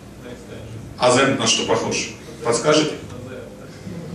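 A young man speaks into a microphone in a large echoing hall.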